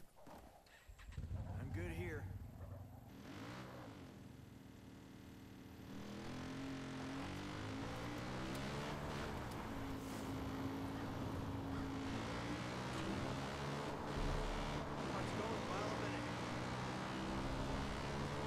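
A quad bike engine starts, then revs and rises in pitch as it speeds along.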